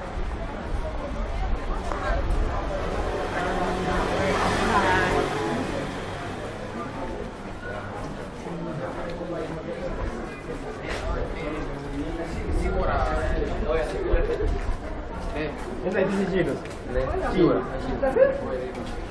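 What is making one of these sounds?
Many men and women chatter nearby outdoors.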